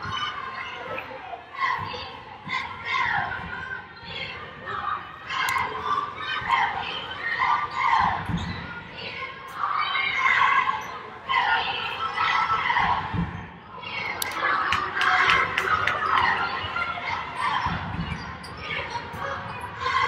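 Young women shout and call out to each other on the court.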